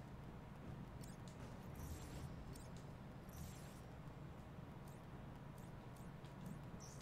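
Soft electronic menu clicks and swishes sound as selections change.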